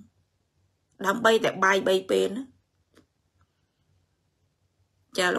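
A woman speaks with animation, close to a microphone.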